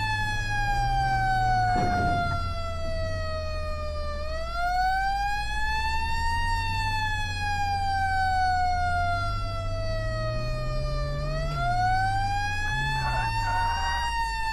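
A siren wails, slowly rising and falling.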